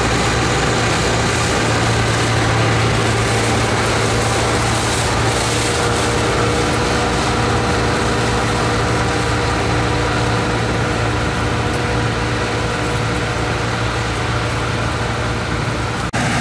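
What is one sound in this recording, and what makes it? A combine harvester's engine rumbles steadily nearby as the machine drives slowly away.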